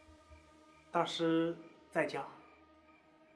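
A man speaks warmly and respectfully, close by.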